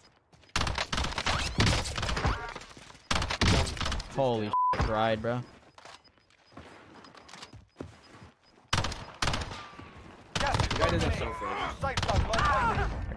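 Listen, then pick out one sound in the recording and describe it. Rifle shots crack out in short bursts, with ringing echoes.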